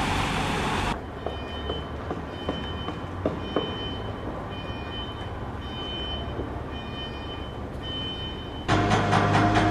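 A diesel backhoe loader idles.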